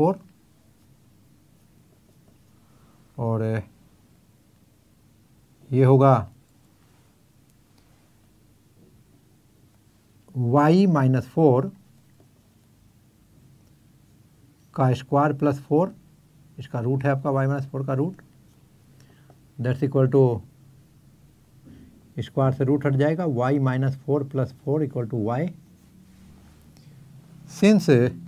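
An elderly man speaks calmly in short bursts.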